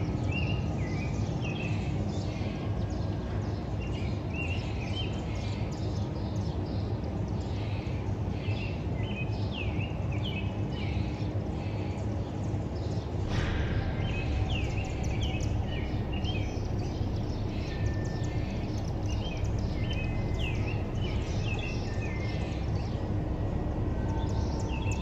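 Wind rustles the leaves of trees outdoors.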